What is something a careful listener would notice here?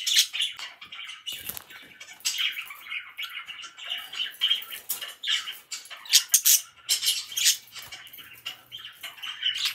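Budgies chirp and chatter rapidly up close.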